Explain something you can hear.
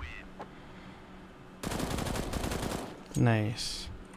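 A weapon is drawn with a short metallic click.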